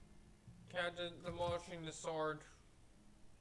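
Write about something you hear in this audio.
A young man talks into a nearby microphone.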